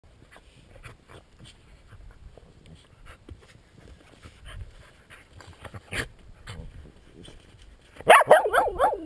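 A dog rolls and wriggles in crunchy snow.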